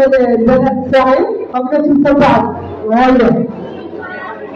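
A woman ululates loudly and shrilly close by.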